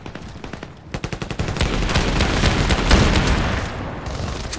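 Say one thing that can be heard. Pistol shots fire in quick bursts.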